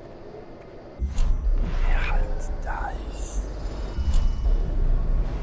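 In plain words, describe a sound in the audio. A low rumbling drone swells and hums.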